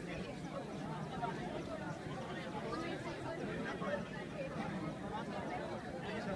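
A large outdoor crowd of young people chatters at once.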